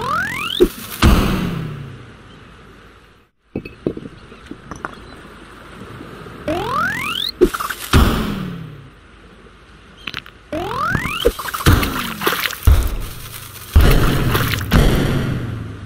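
Blocks crash and tumble with loud thuds.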